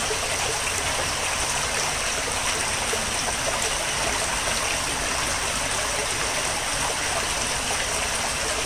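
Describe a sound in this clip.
A small stream of water trickles and gurgles steadily over stones nearby.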